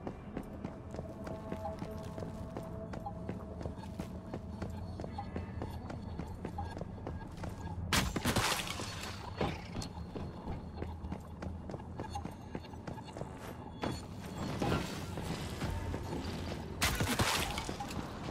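Footsteps patter quickly on hard ground and grass.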